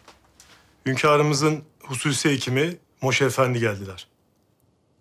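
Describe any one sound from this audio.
A young man speaks calmly and clearly nearby.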